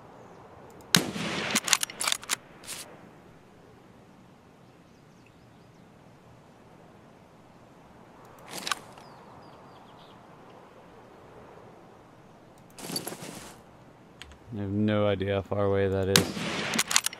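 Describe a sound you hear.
A rifle fires with a loud crack.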